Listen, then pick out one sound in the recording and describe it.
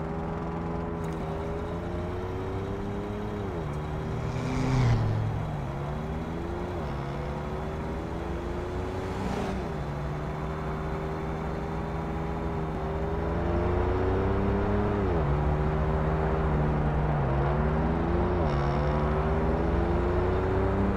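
A truck engine drones steadily, its pitch rising and dropping as gears change.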